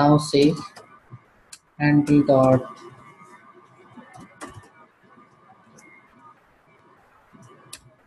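Keys click on a computer keyboard.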